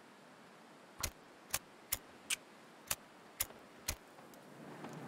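A fire striker scrapes sharply several times.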